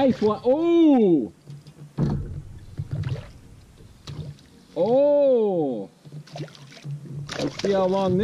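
A fish splashes in the water nearby.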